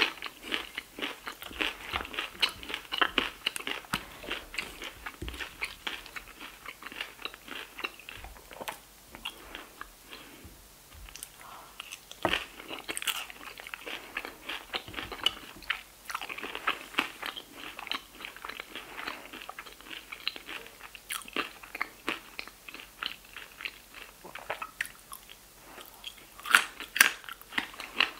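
A woman chews crunchy food close to a microphone.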